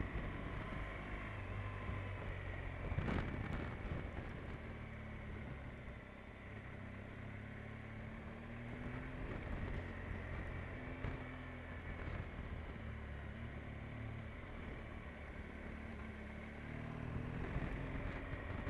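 Tyres roll over a wet, rough lane.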